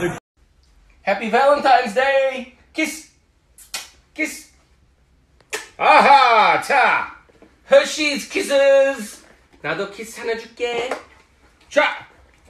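A man talks calmly with small children up close.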